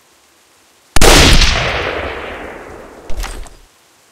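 A rifle shot booms.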